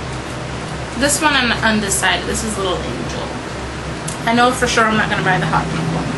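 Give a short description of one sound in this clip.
A young woman speaks casually, close to the microphone.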